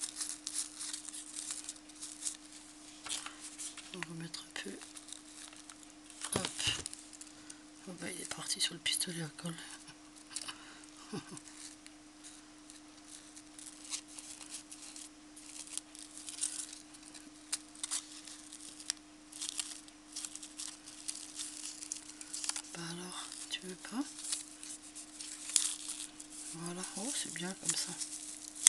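Paper and lace rustle and crinkle softly between fingers.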